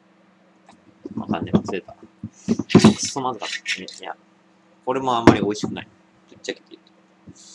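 A glass bottle knocks against a metal cup.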